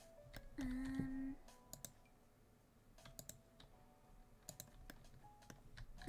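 Soft game chimes and clicks sound now and then.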